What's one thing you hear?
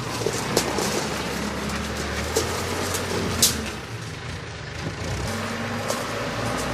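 A diesel loader engine rumbles nearby.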